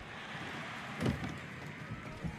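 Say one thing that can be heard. A door latch clicks as a door opens.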